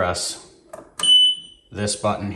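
A machine gives a short high beep.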